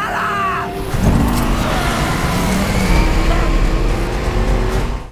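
A heavy vehicle engine roars loudly.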